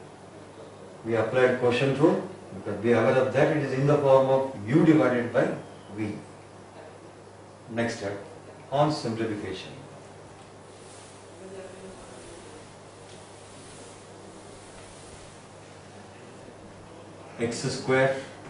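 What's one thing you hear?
An elderly man speaks calmly, explaining.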